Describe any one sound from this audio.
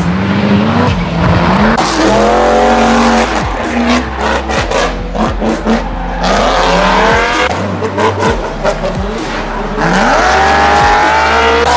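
A car engine revs hard, its pitch rising and falling with sharp gear changes.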